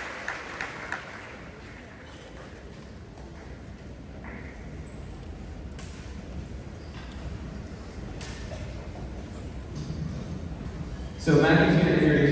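An audience murmurs quietly nearby.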